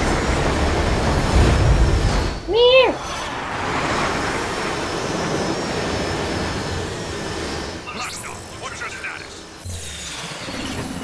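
A spacecraft engine roars steadily as it flies at speed.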